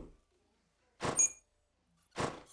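A water jet sprays and hisses against the floor.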